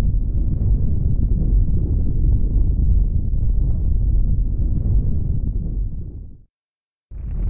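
A deep rumble roars as a giant fist strikes a planet.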